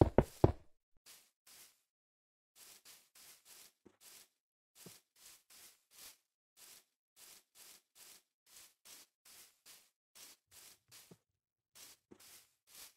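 Footsteps patter steadily on grass.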